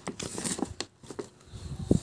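A plastic snack wrapper crinkles.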